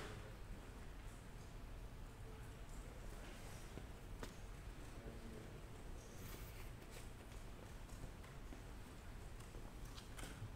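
A man lectures calmly in a large echoing hall.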